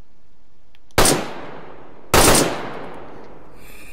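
A rifle fires two loud shots that echo outdoors.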